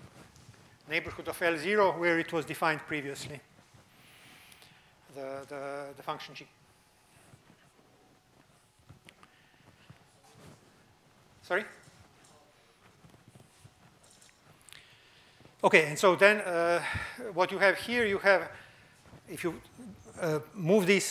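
An older man lectures through a microphone, speaking calmly with pauses.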